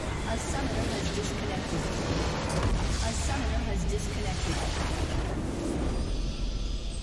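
A huge explosion booms and crackles.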